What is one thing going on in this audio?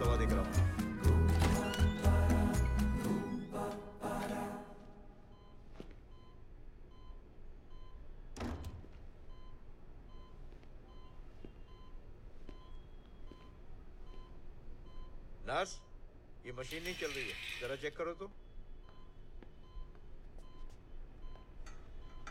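A heart monitor beeps steadily.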